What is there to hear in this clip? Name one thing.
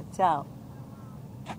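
A young child squeals briefly, close by.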